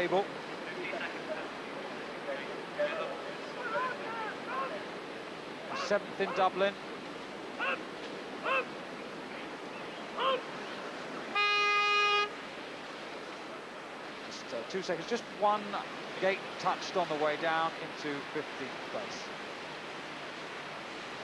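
Whitewater rushes and churns steadily.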